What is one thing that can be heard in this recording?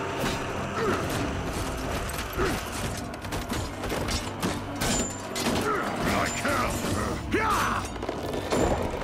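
Metal weapons clash and strike against wooden shields.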